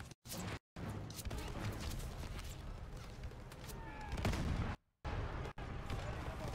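Rifles and machine guns fire in sharp bursts.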